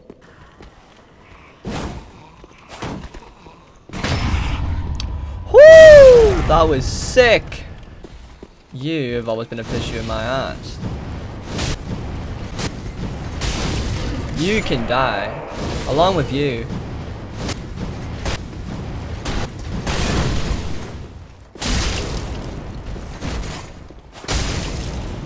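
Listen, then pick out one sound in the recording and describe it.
Game combat sounds clash and crackle with fire spells.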